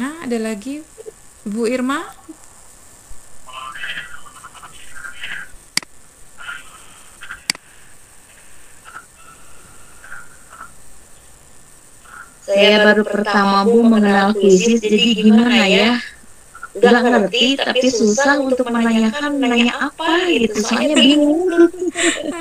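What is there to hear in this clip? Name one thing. A young woman talks calmly over an online call.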